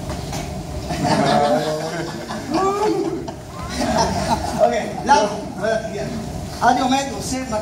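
An elderly man talks with animation nearby.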